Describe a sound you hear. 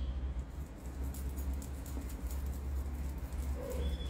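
A spoon scrapes and clinks in a small bowl.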